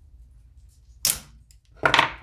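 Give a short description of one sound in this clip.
Pliers snip wire with a sharp click.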